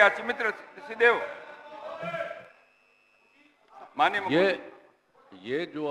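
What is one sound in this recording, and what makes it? An elderly man speaks firmly through a microphone, with pauses.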